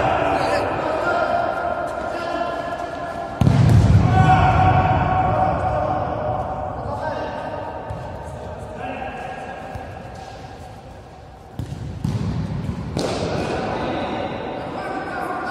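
Men shout and call out to each other in an echoing hall.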